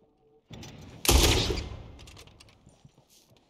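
A gunshot rings out indoors and echoes.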